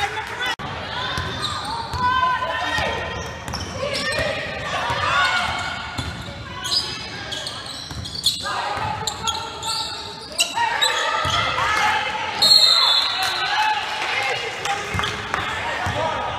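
A basketball thumps as it bounces on a wooden floor.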